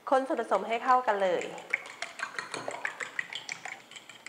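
A fork whisks eggs in a ceramic bowl, clicking against its sides.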